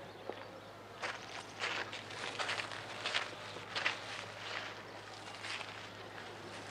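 Footsteps crunch on a path.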